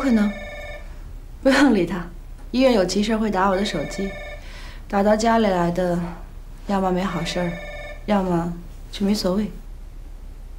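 A young woman answers calmly nearby.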